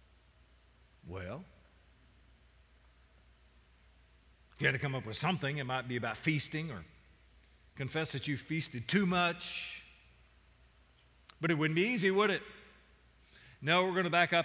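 An elderly man speaks calmly into a microphone, with pauses.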